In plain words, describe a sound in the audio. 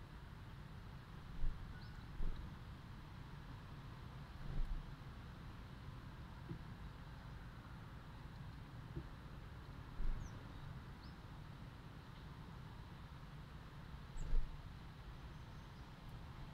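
A small bird chirps now and then.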